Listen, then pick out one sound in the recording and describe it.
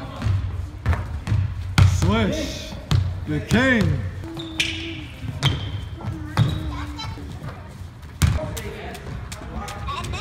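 Basketballs bounce with sharp thuds on a wooden floor in a large echoing hall.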